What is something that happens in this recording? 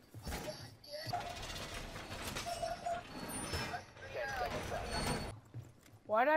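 A metal barricade clanks and scrapes as it is reinforced.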